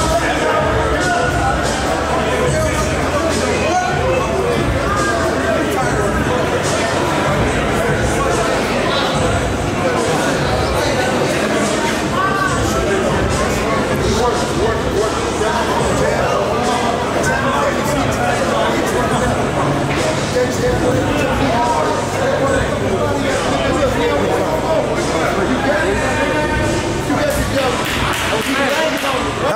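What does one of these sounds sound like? A crowd of men chatter in a large echoing hall.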